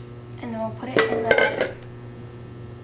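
A metal bowl is set down on a stone counter with a clank.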